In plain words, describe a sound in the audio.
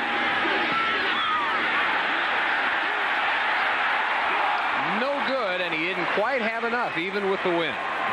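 A large stadium crowd roars and cheers steadily.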